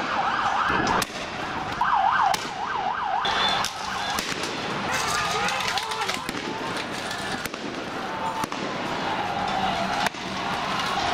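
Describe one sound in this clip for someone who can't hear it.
Gas launchers fire with sharp bangs.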